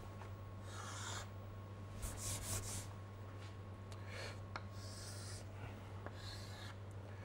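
Chalk scrapes and taps on a board.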